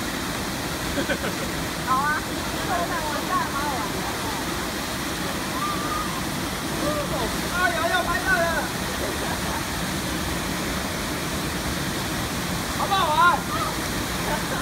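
Young men shout and cheer over the rushing water.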